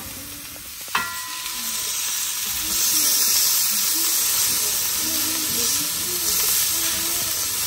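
Tomatoes drop into a sizzling pan.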